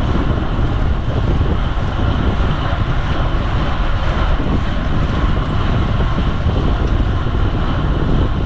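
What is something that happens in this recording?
Wind rushes steadily past, outdoors while riding.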